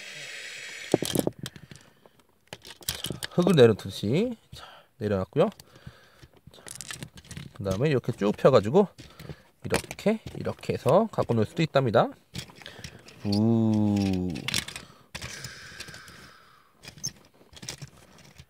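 Plastic toy parts click and snap as they are handled.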